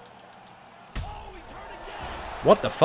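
A heavy kick lands with a sudden thud.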